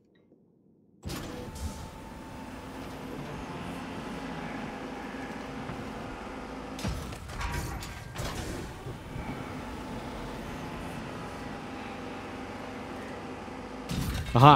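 Heavy lift machinery hums and rumbles steadily.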